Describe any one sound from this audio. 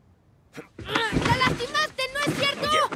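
A young boy speaks nearby.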